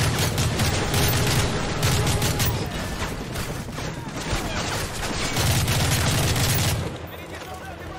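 Gunfire and explosions boom and crackle loudly.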